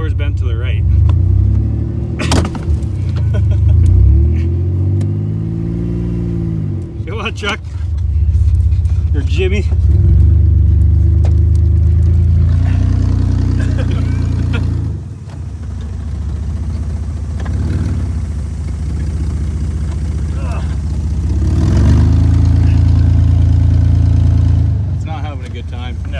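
A car engine idles with a rough, low rumble.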